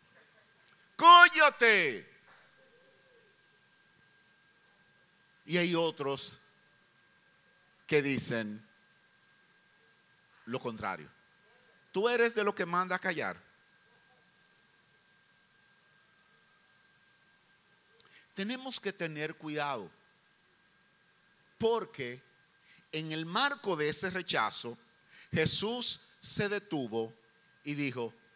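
A middle-aged man speaks with emphasis into a microphone, in bursts with long pauses.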